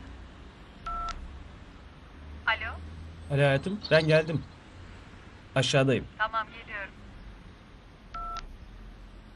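A mobile phone beeps.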